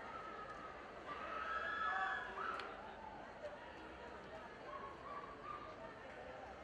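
A woman speaks through loudspeakers in a large hall.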